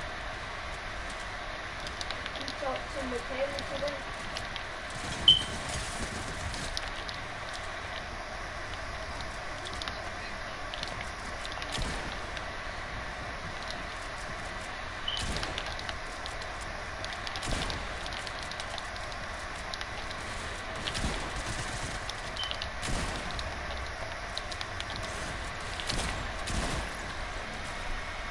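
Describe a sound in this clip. Building pieces snap into place with quick, repeated knocks.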